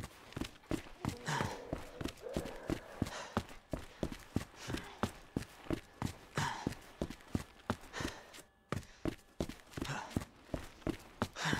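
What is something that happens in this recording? Boots thud quickly on a hard floor as a man runs.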